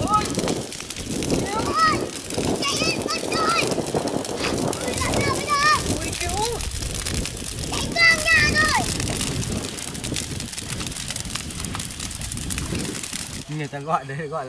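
A bonfire roars and crackles outdoors.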